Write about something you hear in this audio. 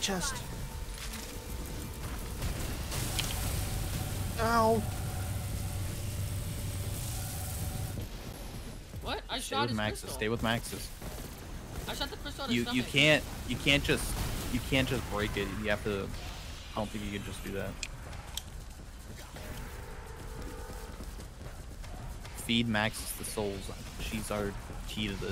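Gunfire crackles and energy blasts roar from a video game.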